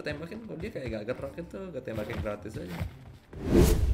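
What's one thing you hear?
A boy talks with animation into a nearby microphone.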